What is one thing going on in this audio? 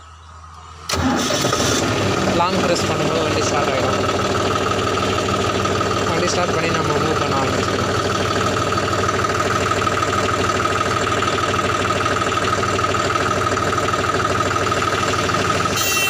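A tractor engine starts and runs with a steady, loud rumble.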